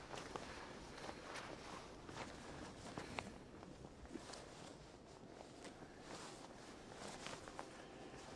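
Fur clothing rustles against bedding.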